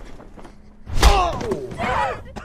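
A heavy body thuds onto a wooden floor.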